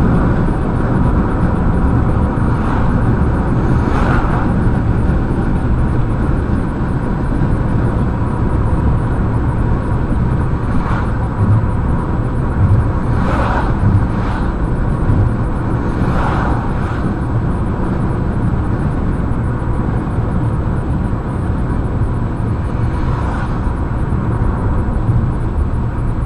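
A car's engine hums steadily inside the car.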